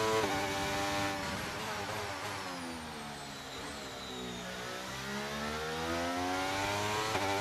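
A racing car engine whines loudly, dropping in pitch as it slows and then revving back up.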